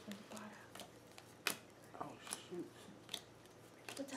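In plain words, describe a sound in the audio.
Playing cards slap softly onto a wooden floor.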